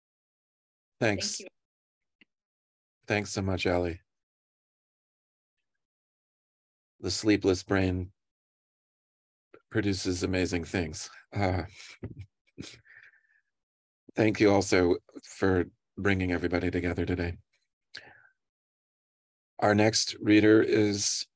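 A middle-aged man speaks calmly over an online call, pausing often.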